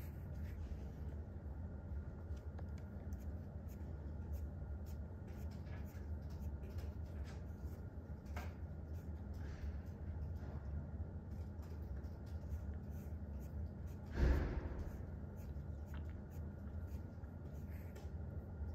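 A pen scratches softly across paper in short strokes.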